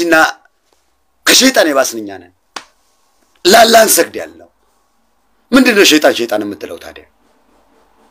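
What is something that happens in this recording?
A man speaks close to a microphone in short, emphatic phrases with pauses.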